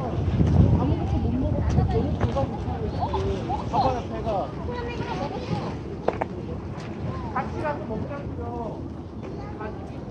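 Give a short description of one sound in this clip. Gulls call overhead.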